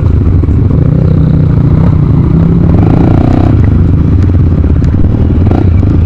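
Water splashes as a dirt bike crosses a shallow stream.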